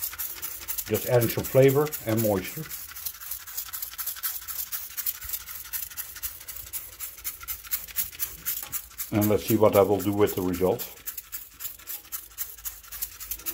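A spray bottle spritzes liquid in short hissing bursts.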